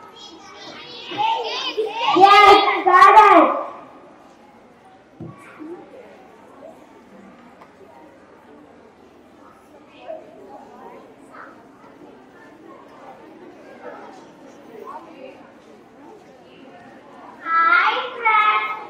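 A young boy speaks loudly through a microphone.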